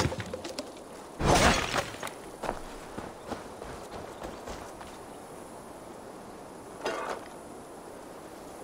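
Footsteps crunch on dirt and dry straw.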